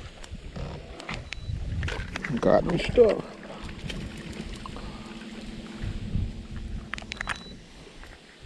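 A remote control beeps when a button is pressed.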